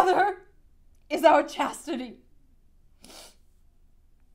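A young woman sobs loudly close by.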